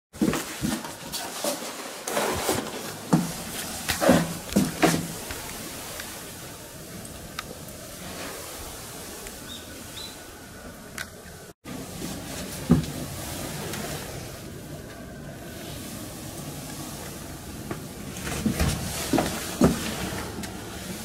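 A sliding door knocks and rattles in its metal frame.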